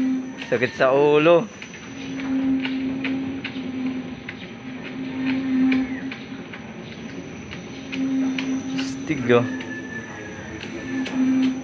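A machine clicks and ticks at an uneven pace.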